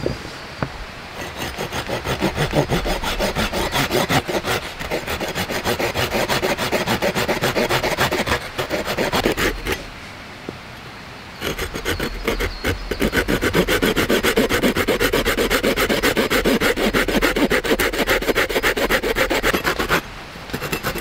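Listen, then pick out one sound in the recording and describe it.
A hand saw rasps back and forth through wood.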